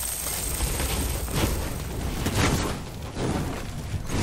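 Small explosions burst and crackle nearby.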